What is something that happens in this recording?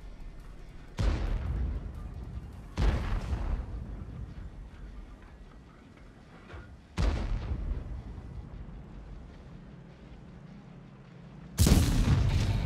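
Tank cannons fire with loud booms.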